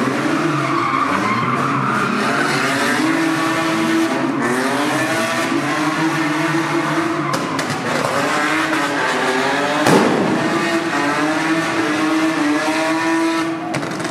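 Tyres screech as a car drifts.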